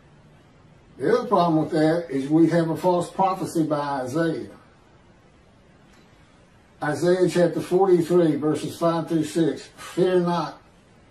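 A man speaks calmly, reading out through an online call, with pauses.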